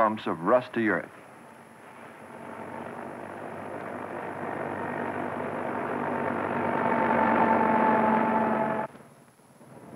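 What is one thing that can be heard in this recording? A heavy truck engine roars louder as the truck approaches and passes close by.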